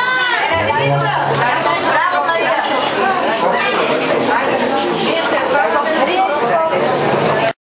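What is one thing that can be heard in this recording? A crowd of men and women talk and laugh loudly nearby.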